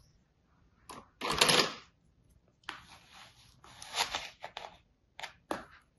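Sand crumbles and rustles under fingers.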